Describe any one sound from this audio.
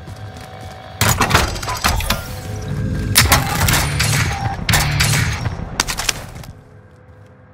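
A rifle fires rapid loud shots.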